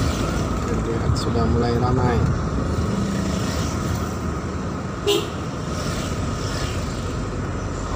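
Motorbikes pass by nearby.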